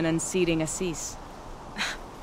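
A young woman speaks calmly and warmly.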